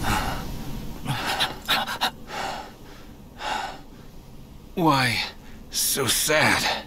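A man speaks quietly and sadly, close up.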